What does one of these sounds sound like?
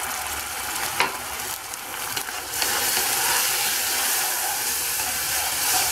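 A metal spoon scrapes and clinks against a pan.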